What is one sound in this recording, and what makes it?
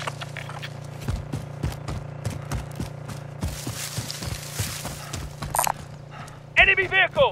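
Footsteps run quickly over dry ground and brush.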